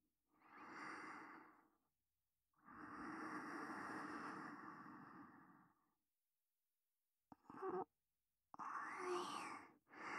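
Small waves wash gently onto a shore.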